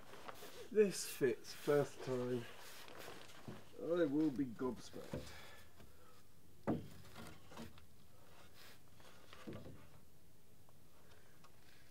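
A wooden beam knocks and creaks as it is raised.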